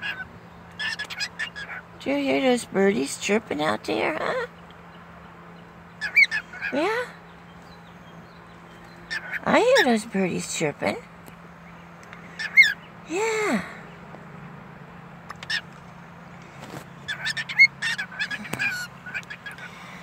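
A cockatiel chirps and whistles up close in short bursts.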